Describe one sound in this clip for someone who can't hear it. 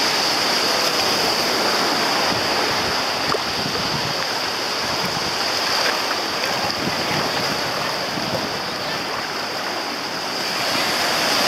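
Small waves wash and break close by.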